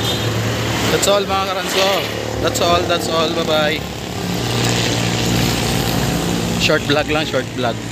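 A man speaks close by, talking calmly.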